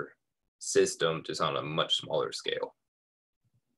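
A young man speaks calmly through an online call.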